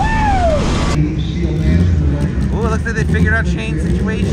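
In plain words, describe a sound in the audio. A race car engine revs loudly at the start line, heard from a distance.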